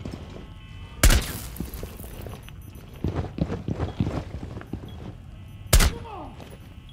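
A heavy gun fires loud booming blasts.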